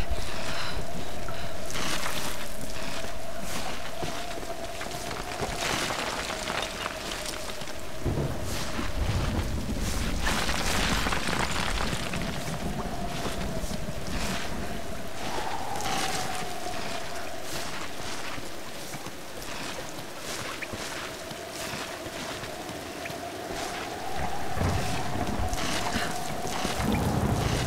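Hands and feet scrape and knock against rock during a climb.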